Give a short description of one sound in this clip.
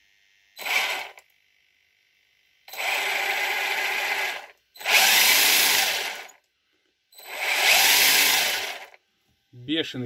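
An electric motor whirs in short bursts as toy car wheels spin.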